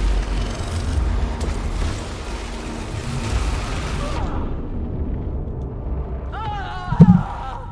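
Energy beams and explosions roar and crackle.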